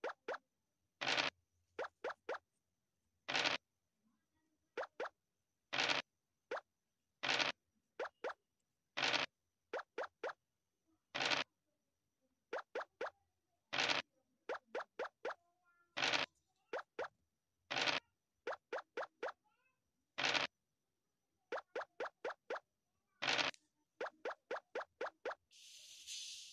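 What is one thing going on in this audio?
Game pieces hop along the board with quick short ticks.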